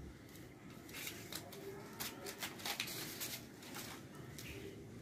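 Stiff paper rustles and crinkles as hands fold it.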